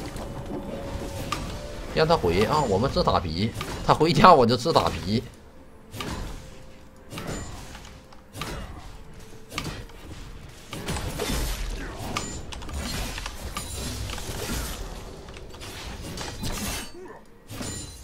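Game combat effects clash and whoosh in quick bursts.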